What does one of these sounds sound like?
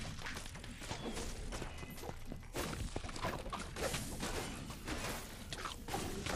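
Fire bursts crackle and pop as enemies are struck.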